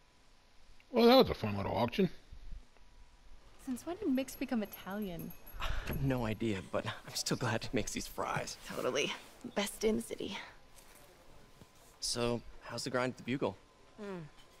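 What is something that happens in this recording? A young woman speaks warmly and laughs softly.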